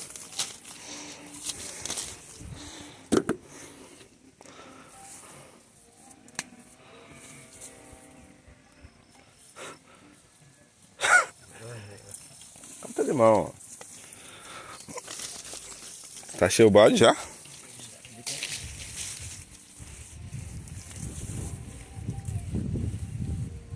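Leaves rustle as fruit is pulled from a tree.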